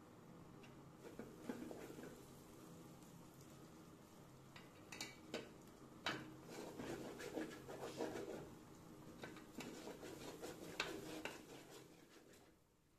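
A metal spoon scrapes and clinks against an aluminium pot while stirring rice.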